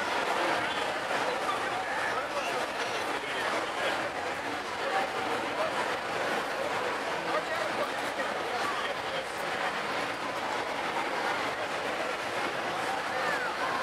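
A large crowd chatters loudly outdoors.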